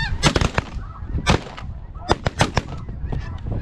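A shotgun fires several shots outdoors.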